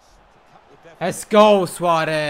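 A young man shouts loudly and excitedly.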